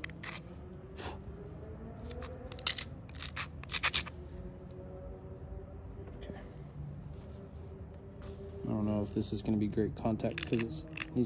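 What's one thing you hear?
Stone flakes snap off with sharp clicks as a tool presses against a stone edge.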